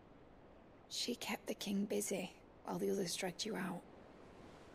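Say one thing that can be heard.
A woman speaks quietly and gently.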